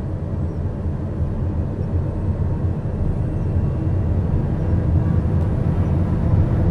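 A small business jet's engines roar as it accelerates down a runway.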